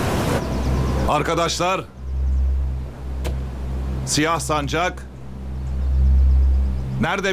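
A man speaks firmly and loudly.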